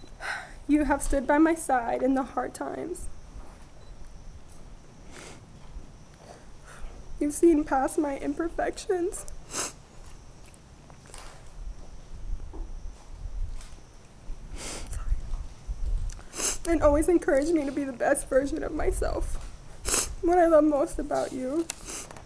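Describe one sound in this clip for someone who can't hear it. A woman speaks calmly and with emotion, close by, in short phrases with pauses.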